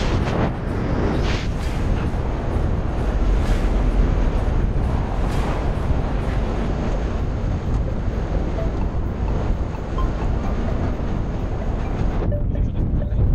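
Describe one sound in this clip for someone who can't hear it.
Wind roars and buffets loudly outdoors.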